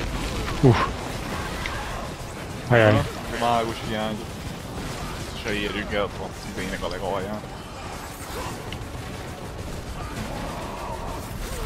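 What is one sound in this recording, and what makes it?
Magic spells whoosh and crackle amid a fight.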